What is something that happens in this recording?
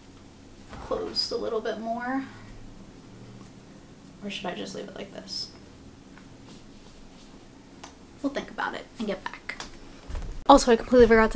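A young woman talks casually and close by.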